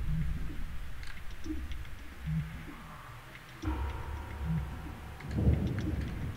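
Footsteps tap softly on a hard floor.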